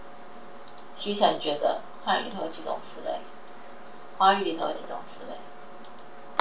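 A woman speaks calmly through a microphone in short bursts.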